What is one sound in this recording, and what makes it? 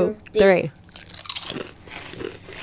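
A woman crunches a crisp snack.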